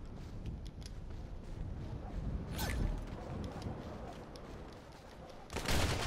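Footsteps crunch on snow as a game character runs.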